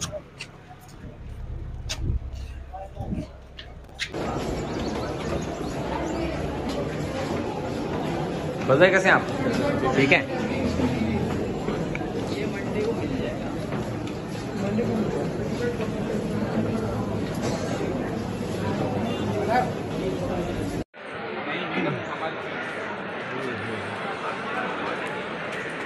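A crowd of men talks and calls out close by.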